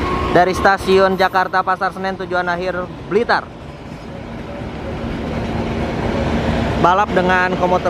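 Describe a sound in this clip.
Passenger coaches roll over the rails.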